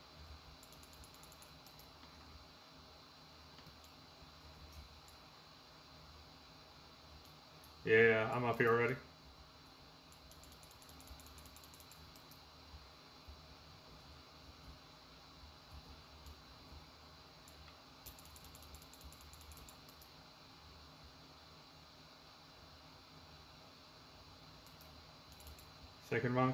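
Keys on a keyboard click and tap quietly.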